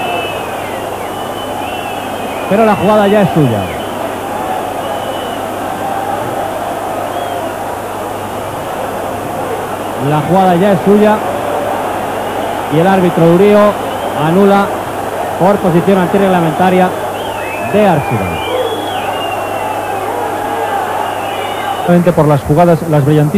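A large stadium crowd roars steadily outdoors.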